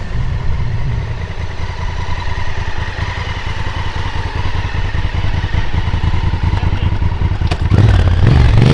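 A motorcycle engine idles with a low, uneven rumble.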